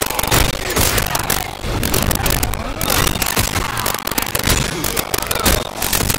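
A heavy gun fires loud blasts.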